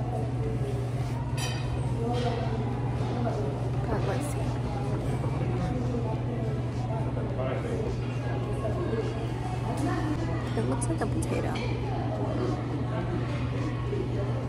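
A young woman slurps and chews noodles close by.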